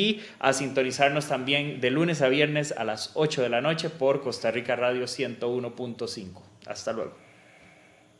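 A man speaks with animation into a nearby microphone.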